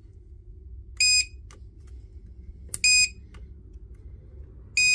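A tester beeps sharply in short bursts as its probes touch metal.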